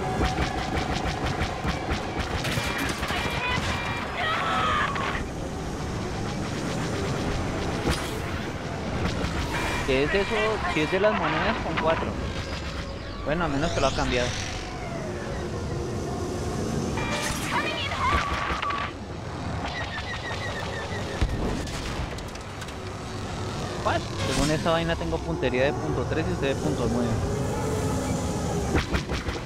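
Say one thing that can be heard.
Spacecraft engines roar steadily.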